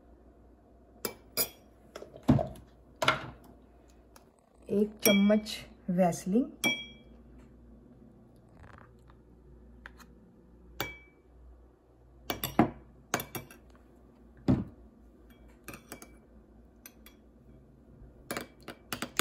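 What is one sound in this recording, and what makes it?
A metal spoon clinks against a small glass bowl.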